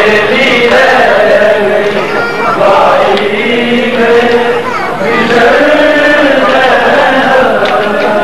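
A dense crowd of men and women chants and shouts loudly all around.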